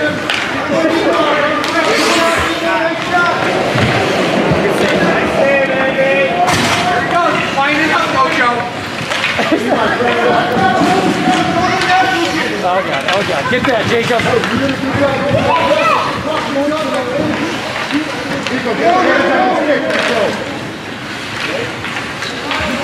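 Skate blades scrape and hiss across ice.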